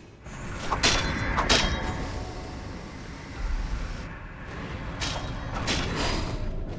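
Magic spells burst with sharp whooshing blasts.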